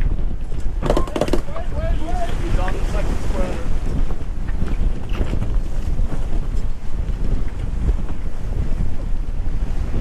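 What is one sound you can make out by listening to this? A loose sail flaps and flutters in the wind.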